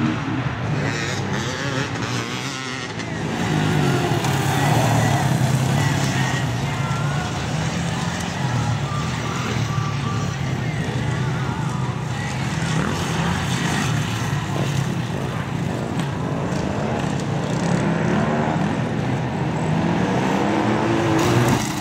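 A dirt bike engine whines, rising and falling in pitch as it shifts gears.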